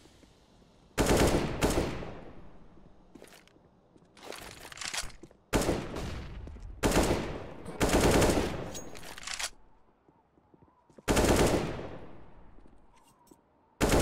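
Loud gunshots crack and echo.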